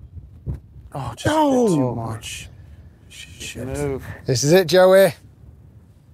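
A man exclaims loudly outdoors.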